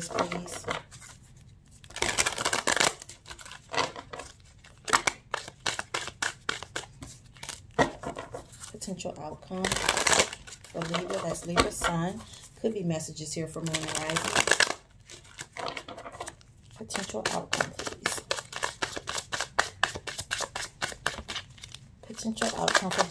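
Playing cards riffle and flick as they are shuffled by hand, close by.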